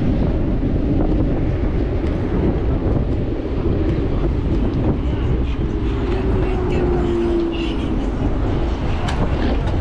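Motorcycle engines hum and drone nearby.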